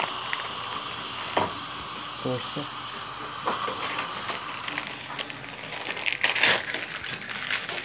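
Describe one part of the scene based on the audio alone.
Metal dental tools click and scrape against teeth.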